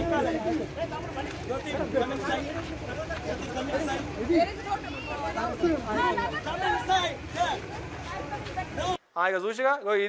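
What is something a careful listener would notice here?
A crowd of men talk and shout over each other outdoors.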